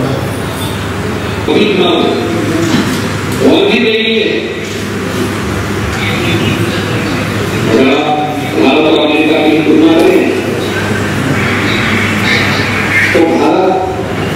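A man speaks steadily into a microphone, heard through a loudspeaker.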